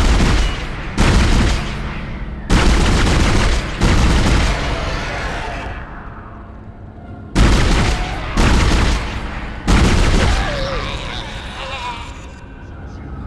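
A heavy weapon fires loud, booming bursts that echo and slowly die away.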